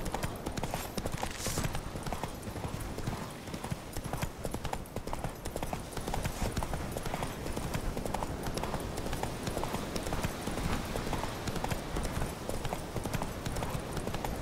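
Horse hooves gallop steadily over soft ground.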